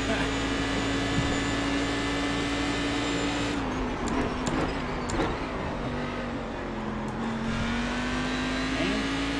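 A racing car engine drones steadily, its pitch dipping and rising with the gears.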